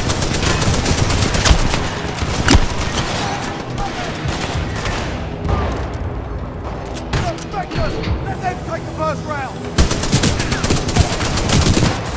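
Automatic gunfire rattles rapidly.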